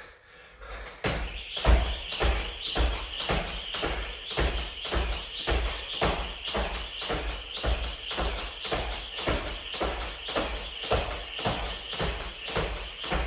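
A jump rope whips and taps the floor in a fast, steady rhythm.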